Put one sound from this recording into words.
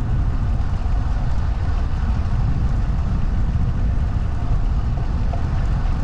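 Bicycle tyres roll steadily over smooth asphalt.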